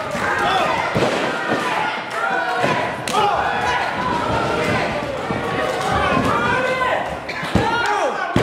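A body thuds onto a ring mat.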